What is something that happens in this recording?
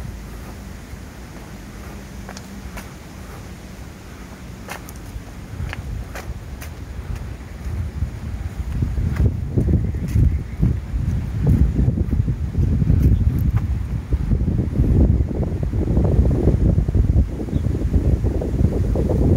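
Wind buffets loudly in gusts, growing stronger.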